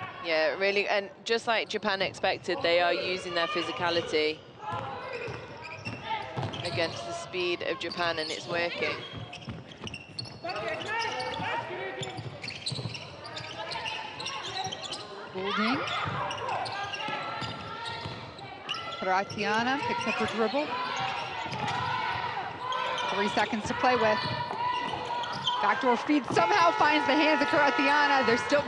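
Basketball shoes squeak on a hardwood court.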